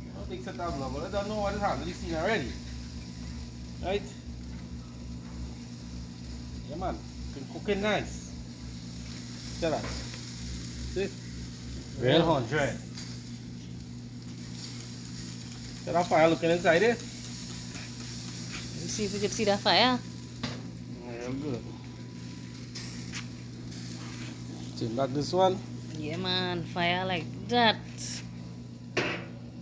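Meat sizzles softly over hot coals.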